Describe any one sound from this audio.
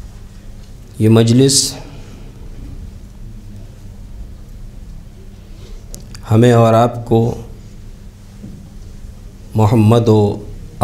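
A man speaks slowly and solemnly through a microphone, with long pauses.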